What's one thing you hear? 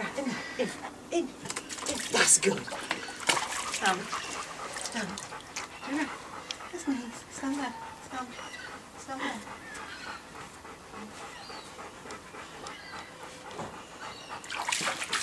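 Water splashes and sloshes as a large dog steps around in a shallow tub.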